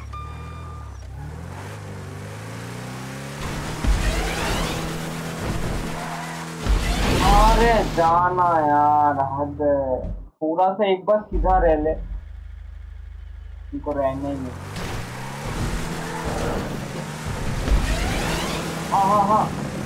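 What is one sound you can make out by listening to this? A truck engine revs and drones up and down.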